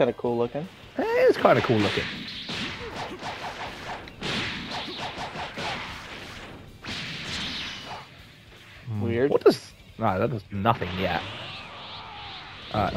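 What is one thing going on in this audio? Energy blasts whoosh and crackle during a fight.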